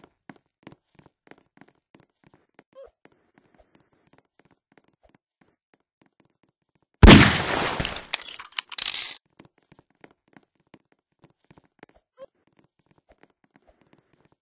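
Footsteps tap lightly on a wooden floor.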